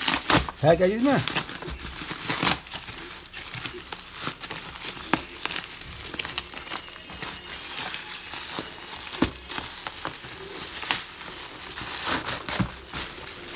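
Cardboard tears and scrapes as it is ripped away.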